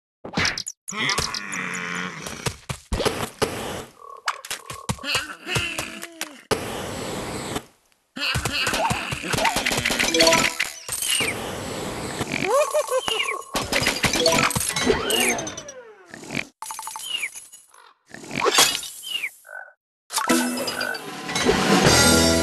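Game sound effects of zapping and popping play in quick bursts.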